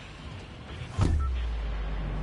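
A figure leaps out with a sudden whoosh.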